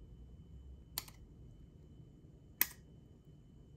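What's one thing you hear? A metal ice cream scoop clinks against a ceramic ramekin.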